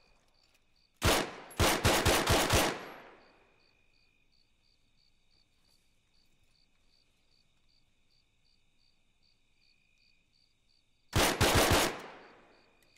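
Gunshots crack in quick bursts and echo briefly.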